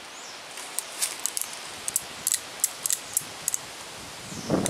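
A revolver's action clicks as it is handled.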